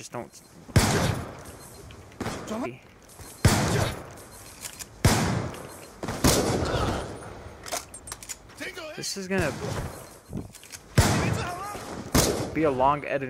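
Loud blasts boom and echo away.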